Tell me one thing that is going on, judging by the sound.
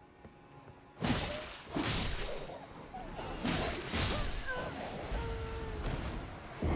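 Metal blades clash and strike with sharp hits.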